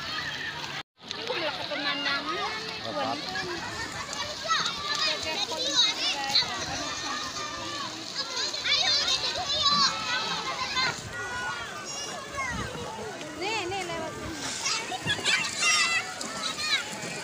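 Young children chatter and squeal close by.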